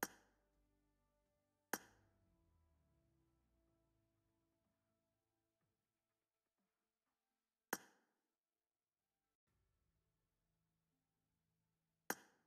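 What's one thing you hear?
A bright electronic chime rings several times, each note ringing out and fading.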